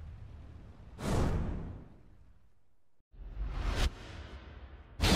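A sharp whoosh sweeps past.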